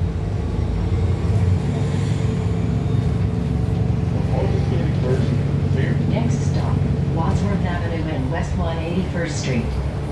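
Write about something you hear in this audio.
A hybrid-electric city bus hums and rumbles as it drives, heard from inside.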